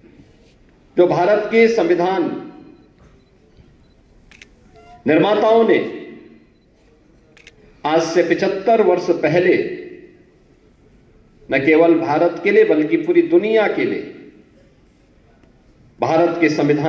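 A man speaks forcefully through a microphone in bursts with pauses, echoing in a large hall.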